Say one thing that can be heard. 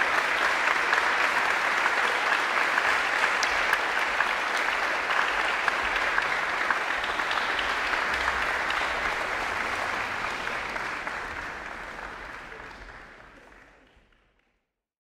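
An audience applauds loudly in a large echoing hall, then the clapping fades away.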